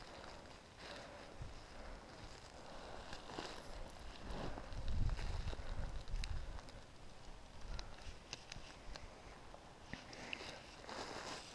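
Hands rustle in crunchy snow.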